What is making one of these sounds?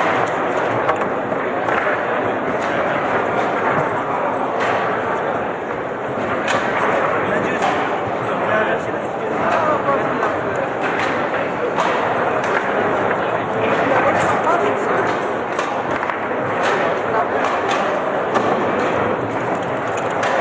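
A small hard ball clacks sharply against plastic figures and the walls of a table football table.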